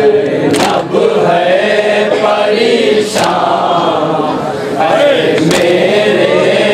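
A crowd of young men chants together loudly, in a rhythm.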